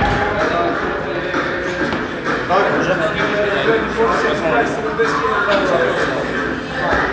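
Several men talk at once in a room with some echo.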